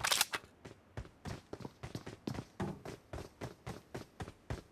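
Footsteps patter quickly and evenly on grass.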